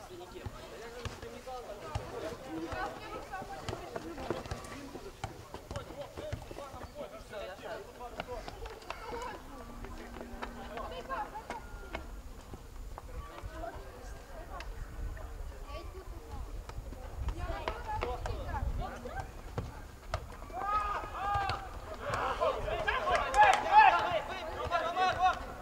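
Men shout and call to each other across an open outdoor field.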